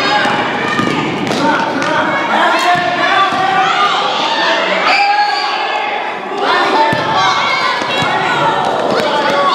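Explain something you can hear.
A crowd of spectators cheers and shouts loudly in an echoing gym.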